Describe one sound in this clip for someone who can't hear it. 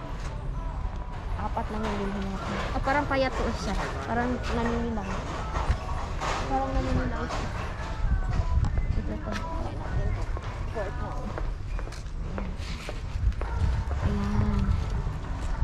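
A shopping cart rattles as it rolls.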